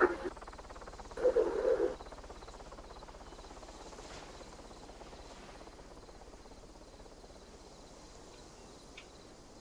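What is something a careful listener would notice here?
Footsteps crunch steadily over dry grass.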